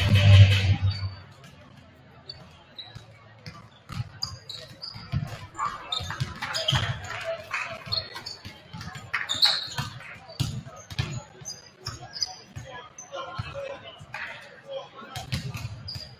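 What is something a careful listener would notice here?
Players call out and chatter across the gym.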